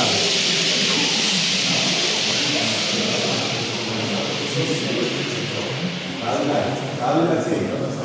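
Men and women talk in low voices across a large echoing hall.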